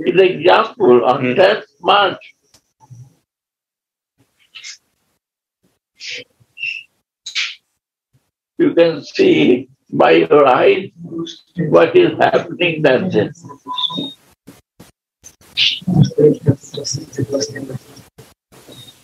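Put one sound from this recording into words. An elderly man speaks calmly, with pauses, heard over an online call.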